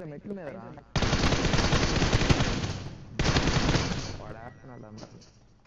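Automatic rifle fire rattles in bursts.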